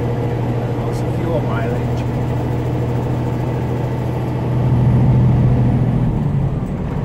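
A vehicle's engine hums steadily as it drives along.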